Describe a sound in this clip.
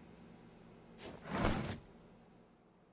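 A short game notification sound plays.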